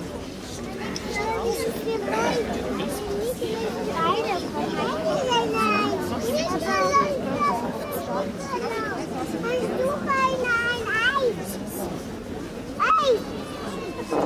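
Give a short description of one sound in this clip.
A child speaks through a microphone and loudspeaker outdoors.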